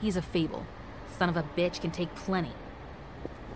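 A young woman speaks sharply and angrily.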